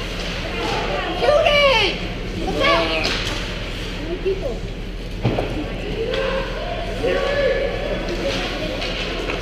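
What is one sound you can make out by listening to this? Young hockey players shout to each other across a large echoing rink.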